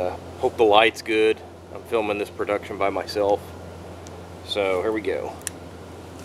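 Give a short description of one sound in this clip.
A man talks calmly nearby outdoors.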